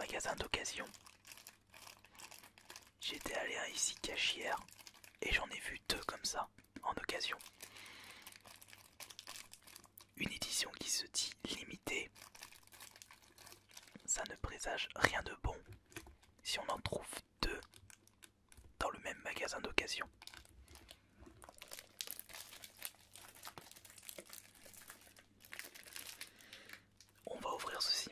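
Hands handle a plastic game case with light taps and rubs.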